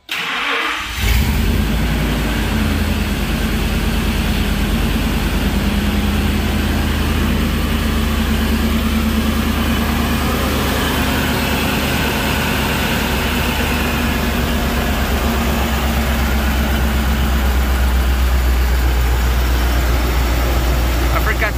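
A truck engine idles with a deep, steady rumble.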